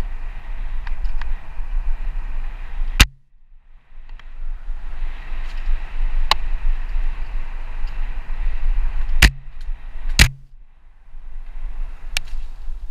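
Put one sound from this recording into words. Bicycle tyres rattle and crunch over a dirt trail.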